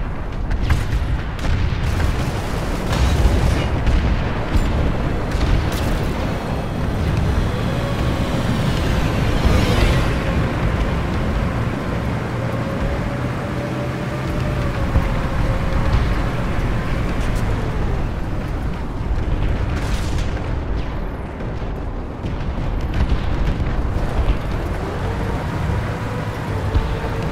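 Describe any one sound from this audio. Tyres crunch over snow and gravel.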